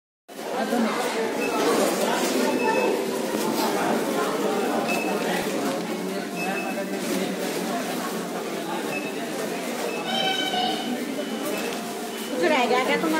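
Many voices murmur and chatter nearby in a busy indoor space.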